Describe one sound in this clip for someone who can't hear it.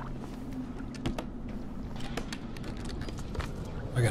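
A wooden crate lid creaks open.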